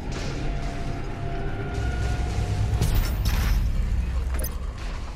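A low droning rumble hums steadily throughout.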